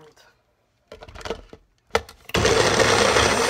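A plastic cup clicks and knocks against a blender base.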